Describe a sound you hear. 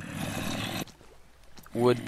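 A zombie groans low and hoarsely.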